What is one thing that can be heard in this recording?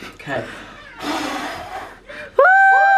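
A young man blows out candles with a long puff of breath.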